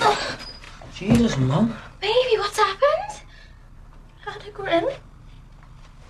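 A young woman sobs and speaks in a shaky, upset voice close by.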